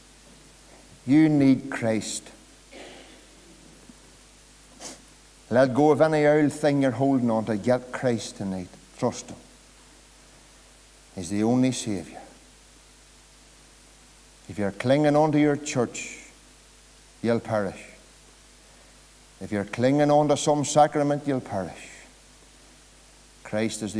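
A middle-aged man speaks slowly and earnestly into a microphone, in bursts with pauses.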